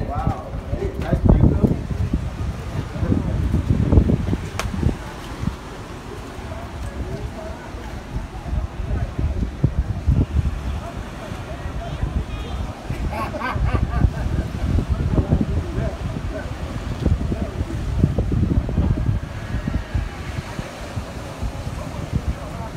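Waves crash and wash onto the rocky shore.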